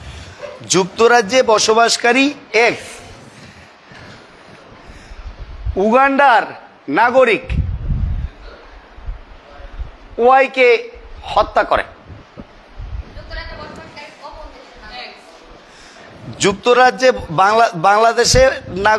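A middle-aged man speaks with animation close to a microphone, in short bursts with pauses.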